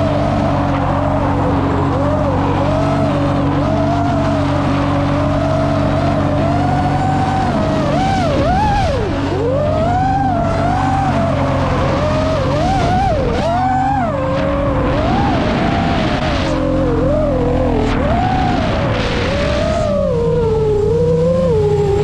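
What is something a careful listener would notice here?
Tyres screech on asphalt as a car drifts.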